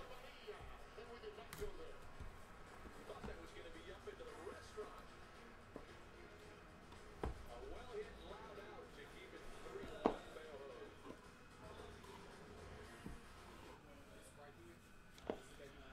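Cardboard boxes slide and tap against each other.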